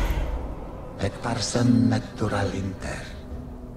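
A man speaks in a deep, menacing voice, close up.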